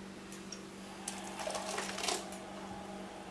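A thick liquid pours from a jug into a bowl.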